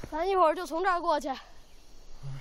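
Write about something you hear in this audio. A young boy speaks nearby with animation.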